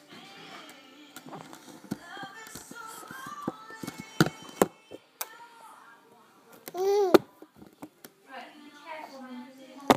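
A baby babbles and coos close by.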